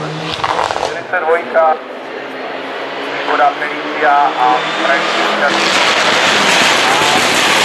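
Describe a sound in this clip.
Another rally car engine approaches from afar, revving and growing louder.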